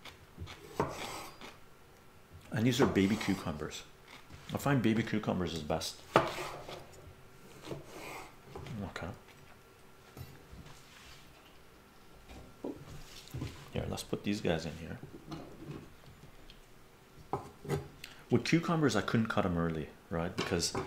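A knife chops through cucumber on a cutting board.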